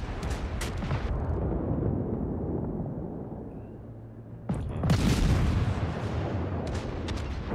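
Heavy naval guns fire in loud booming salvos.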